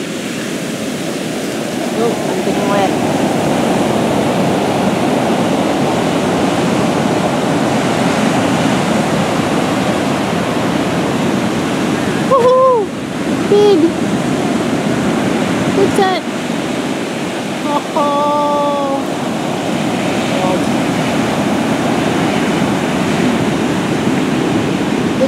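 Surf roars and crashes steadily onto the shore.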